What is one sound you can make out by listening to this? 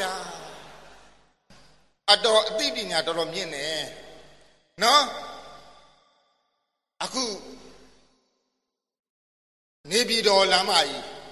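An older man speaks with animation in short bursts, each trailing off in a strong echo.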